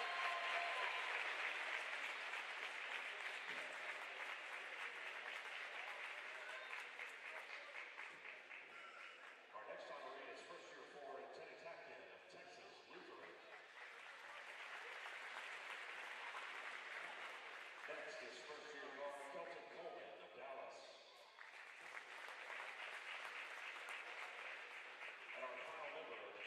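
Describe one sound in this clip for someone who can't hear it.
A crowd cheers and applauds in a large echoing gym.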